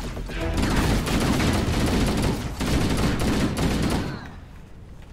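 Rapid gunfire blasts in quick bursts.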